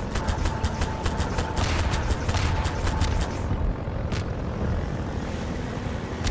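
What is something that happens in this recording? An airboat engine drones loudly.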